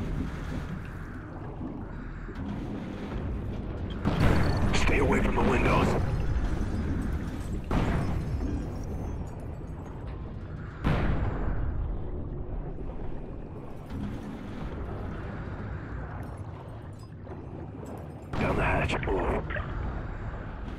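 A deep, muffled underwater rumble drones steadily, with surges of rushing water.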